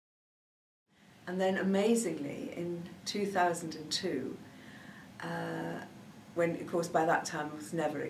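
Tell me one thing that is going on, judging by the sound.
A middle-aged woman speaks with animation close to a microphone.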